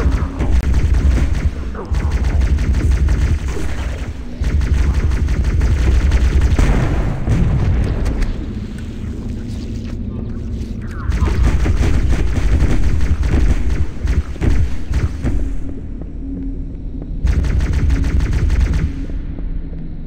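A plasma weapon fires rapid bursts with a heavy, crackling hum.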